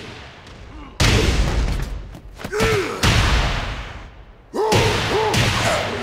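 Heavy blows land hard in a fight.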